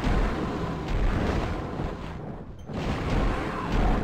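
A magic bolt crackles and zaps.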